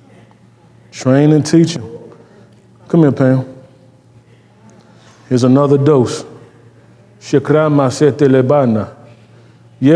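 A man speaks calmly in short phrases with pauses.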